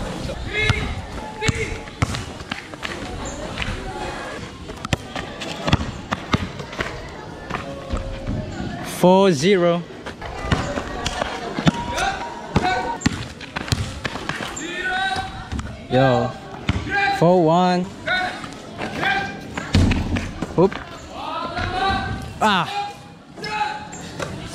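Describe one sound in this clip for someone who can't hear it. A basketball bounces on hard pavement.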